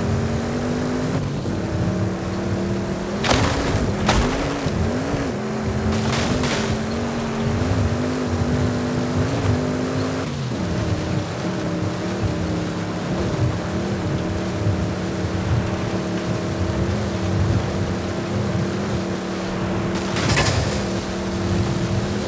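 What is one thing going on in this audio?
Tyres rumble and crunch over rough grass and dirt.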